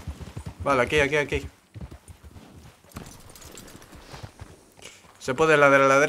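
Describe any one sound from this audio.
Horse hooves clop slowly on a dirt track.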